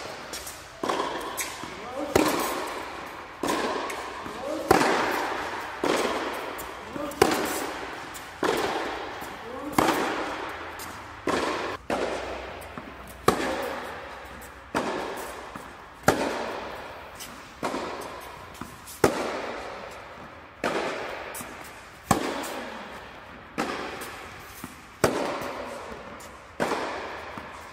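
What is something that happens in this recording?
Tennis balls are struck back and forth with sharp pops that echo in a large hall.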